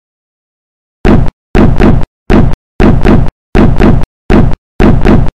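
A cartoon dinosaur stomps in quick, heavy steps.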